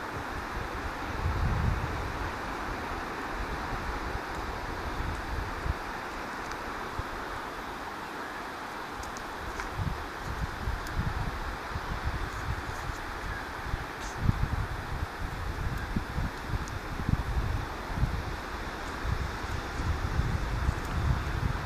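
Wind rumbles and buffets outdoors in gusts.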